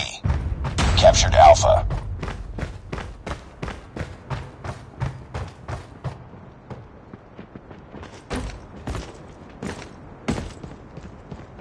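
Footsteps thud quickly and steadily across floors and ground.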